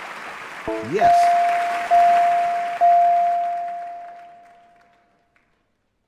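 A bright electronic chime rings out three times, then slowly fades.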